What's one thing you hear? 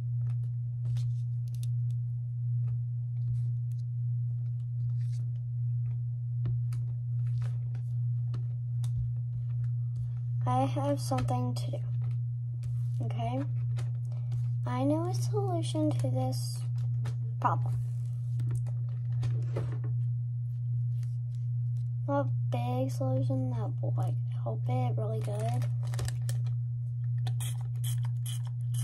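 Small objects click and tap against a table.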